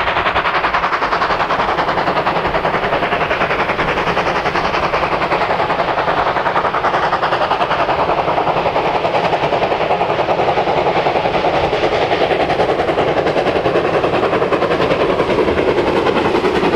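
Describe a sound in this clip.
A steam locomotive chuffs rapidly and hard, drawing closer.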